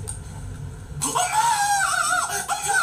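A man shouts loudly into a microphone.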